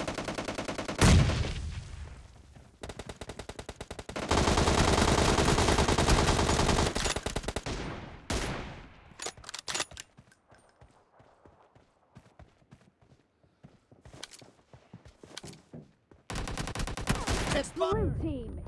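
Automatic rifles fire in rapid bursts, loud and close.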